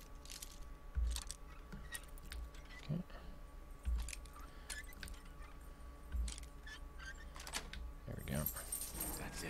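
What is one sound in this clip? Metal lock picks click and scrape inside a lock.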